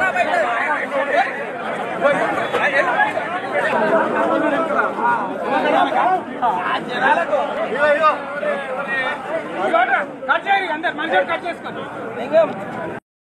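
A crowd of men talk and shout over one another close by.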